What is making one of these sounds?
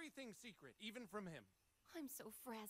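A man speaks calmly and seriously.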